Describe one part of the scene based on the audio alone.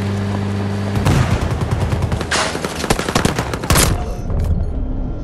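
Gunfire and explosions crack loudly in bursts.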